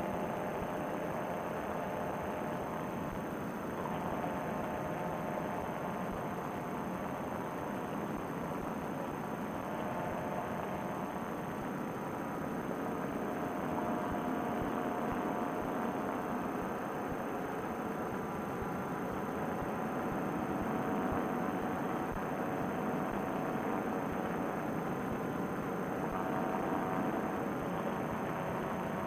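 A paramotor engine drones steadily throughout.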